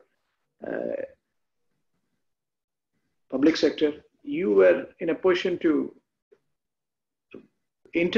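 An elderly man speaks with animation over an online call.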